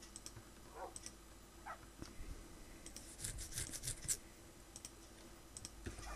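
Soft clicks sound as items are moved between slots.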